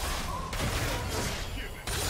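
Magic blasts whoosh and crackle in a clash of video game fighters.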